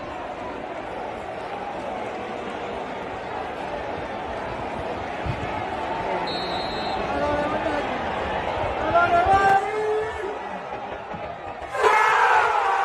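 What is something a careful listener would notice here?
A large stadium crowd chants and sings steadily.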